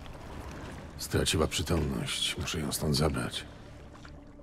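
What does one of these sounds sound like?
A man speaks in a low, rough voice, close by.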